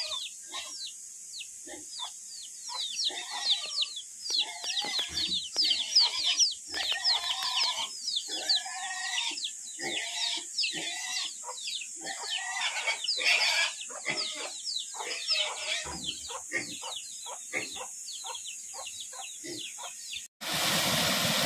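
Chicks peep rapidly nearby.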